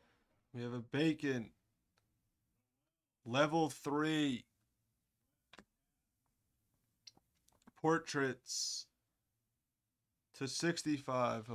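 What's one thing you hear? A man speaks with animation in short bursts, close to a microphone.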